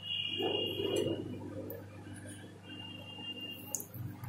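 A spoon stirs and scrapes against a glass bowl.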